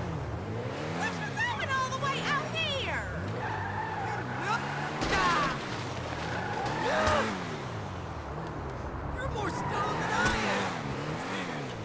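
Tyres squeal on the road.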